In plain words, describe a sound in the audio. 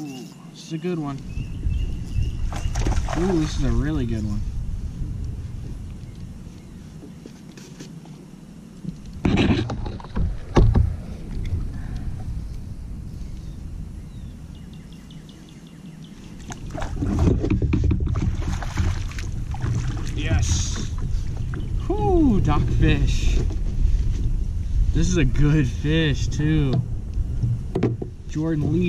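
Wind rumbles across the water outdoors.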